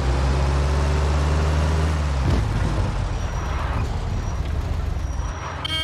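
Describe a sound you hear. Car tyres hiss over snowy road.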